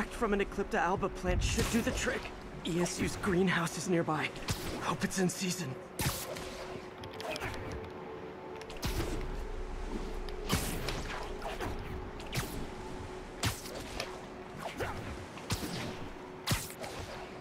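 Quick whooshes sweep past as a figure swings through the air.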